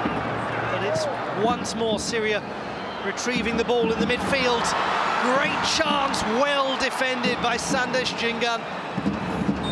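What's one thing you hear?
A stadium crowd whistles and cheers loudly as an attack nears goal.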